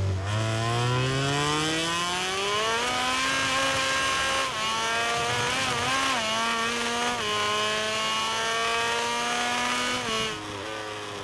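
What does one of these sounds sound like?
A motorbike engine roars, rising in pitch as it speeds up through the gears.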